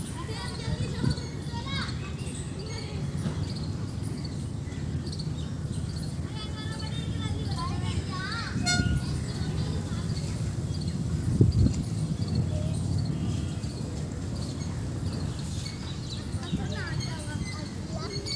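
A metal playground roundabout creaks as a young boy climbs on it.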